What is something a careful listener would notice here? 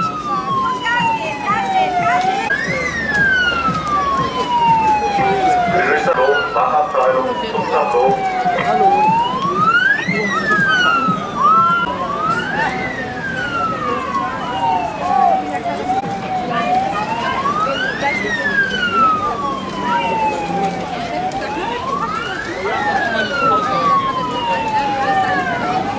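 A fire engine siren wails loudly, rising and falling again and again, close by.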